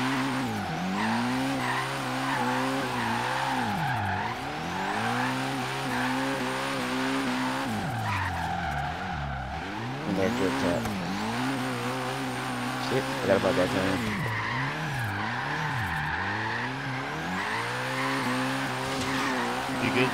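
A car engine revs hard and falls repeatedly as the car drifts.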